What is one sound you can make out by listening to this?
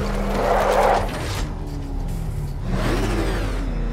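A powerful car engine rumbles and roars.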